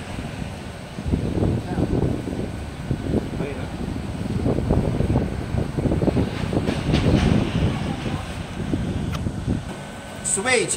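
A machine hums and rumbles steadily.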